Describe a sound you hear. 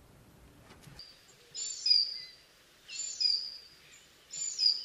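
A bird of prey gives loud, harsh, squealing calls.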